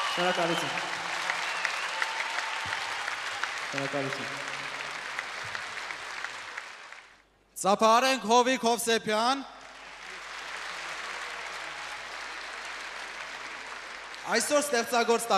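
A large crowd claps and cheers in a big hall.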